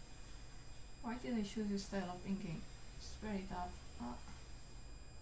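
A young woman speaks briefly and calmly into a close microphone.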